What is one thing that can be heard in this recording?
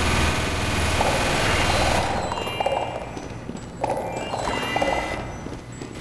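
A burst of sparkly magic whooshes and chimes.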